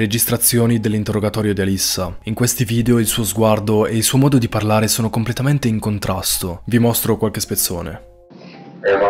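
A young man talks to a microphone close up with animation.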